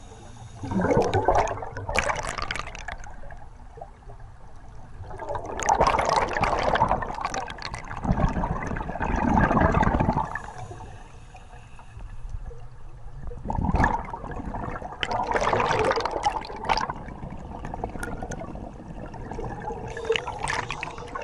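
Scuba bubbles gurgle and rush loudly underwater in repeated bursts.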